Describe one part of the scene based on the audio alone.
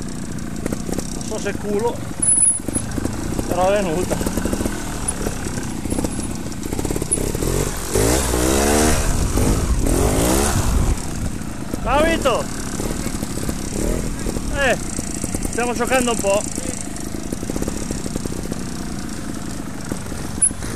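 A motorcycle engine putters and revs up close.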